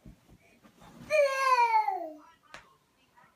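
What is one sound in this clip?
A toddler lets out a loud, high squeal that slides downward.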